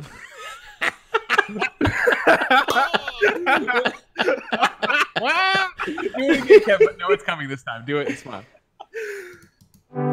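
Several men laugh loudly through microphones.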